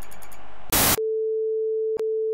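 A steady electronic test tone sounds.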